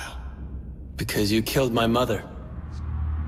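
A young man answers in a low, hard voice.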